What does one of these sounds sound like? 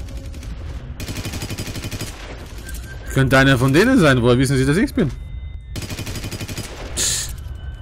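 Rapid gunshots crack and echo.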